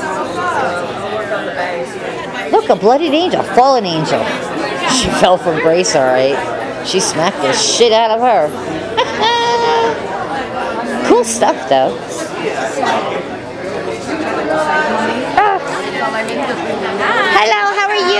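A crowd of people chatter all around.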